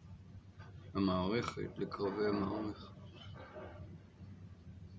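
An elderly man speaks briefly and calmly, close to the microphone.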